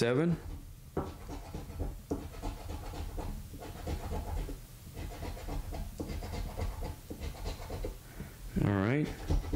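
A coin scratches the coating off a lottery scratch card.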